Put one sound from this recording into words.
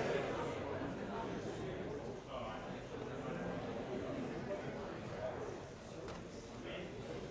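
A large crowd of young men and women murmurs and chatters in an echoing hall.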